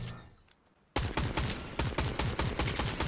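A rifle fires a fast burst of shots.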